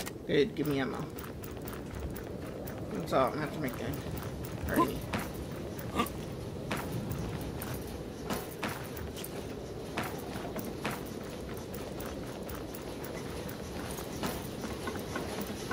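Footsteps tread steadily over rough ground.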